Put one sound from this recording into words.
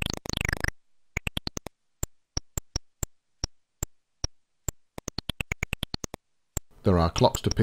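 Sharp electronic clicks tick in an uneven rhythm as a game character runs.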